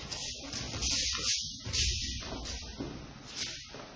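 A body falls and thuds onto a padded mat.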